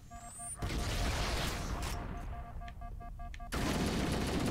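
A plasma explosion crackles and booms.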